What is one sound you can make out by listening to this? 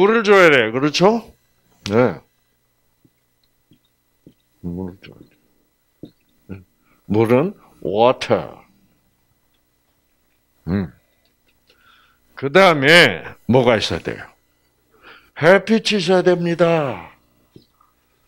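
An elderly man speaks calmly through a microphone, pausing often.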